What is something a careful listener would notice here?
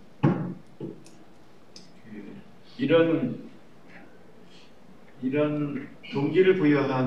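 A middle-aged man speaks calmly into a microphone in short phrases.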